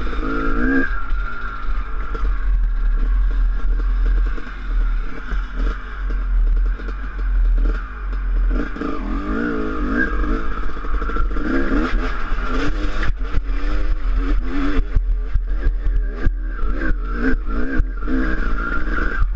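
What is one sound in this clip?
A dirt bike engine revs and drones up close, changing pitch.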